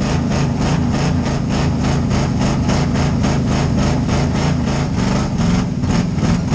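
A race car engine roars loudly and steadily from inside the car.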